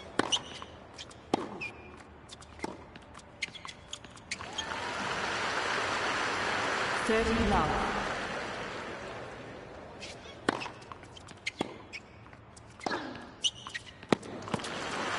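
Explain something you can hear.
Tennis balls are struck with sharp pops in a rally.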